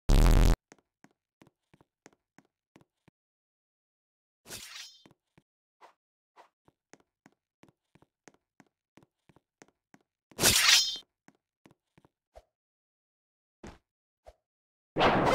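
Quick footsteps patter as a game character runs.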